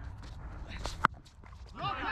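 A cricket bat strikes a ball with a sharp crack.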